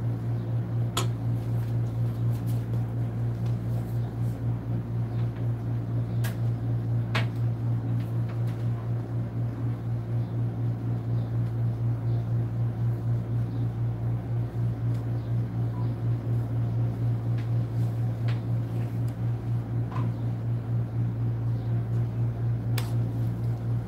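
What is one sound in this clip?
A metal spoon clinks now and then against a dish.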